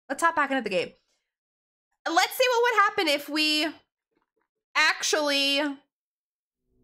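A young woman speaks expressively into a microphone, close up.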